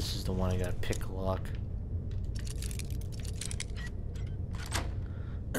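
A metal lockpick scrapes and clicks inside a lock.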